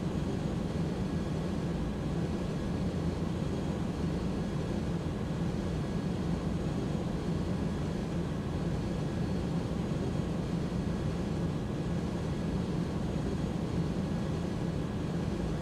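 A steady low engine drone hums throughout.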